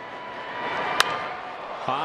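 A bat strikes a baseball with a sharp crack.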